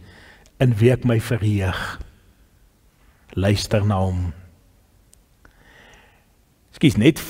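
A middle-aged man speaks calmly and deliberately into a microphone, with pauses between phrases.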